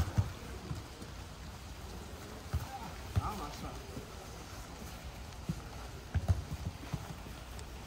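Footballs thud as players kick them outdoors.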